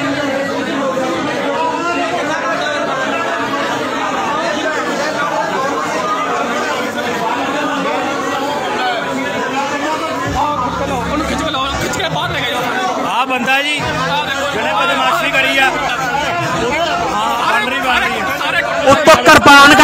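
Several men argue loudly, shouting over each other.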